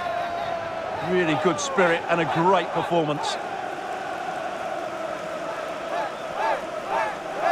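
A large stadium crowd cheers and roars steadily.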